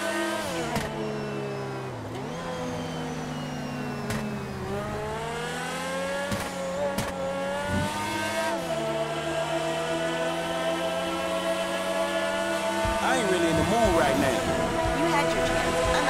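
A sports car engine roars at high speed, its pitch dropping and climbing as the gears shift.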